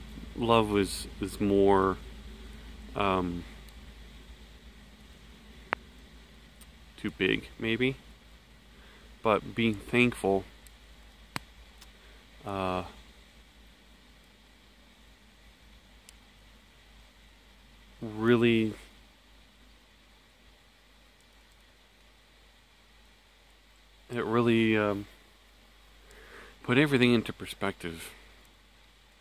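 A middle-aged man speaks calmly close to the microphone, in short bursts with long pauses.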